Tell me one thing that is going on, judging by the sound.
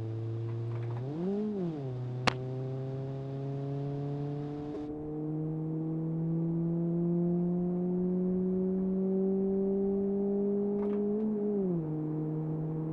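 A car engine briefly revs up and drops during gear changes.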